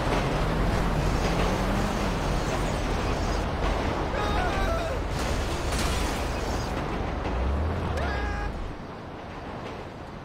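A car crashes and tumbles over rough ground with heavy thuds.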